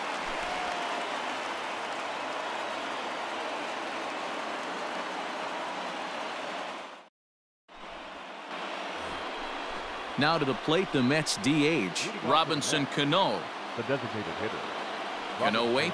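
A large crowd murmurs steadily in an echoing stadium.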